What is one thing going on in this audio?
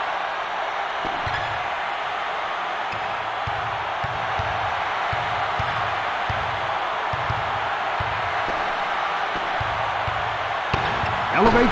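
A basketball bounces with repeated dull thumps on a wooden court.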